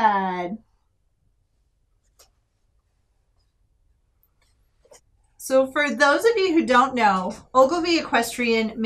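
A woman speaks close by, calmly and with expression.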